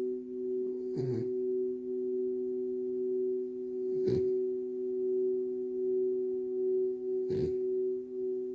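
A small dog snorts softly through its nose.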